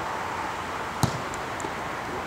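A ball is kicked hard.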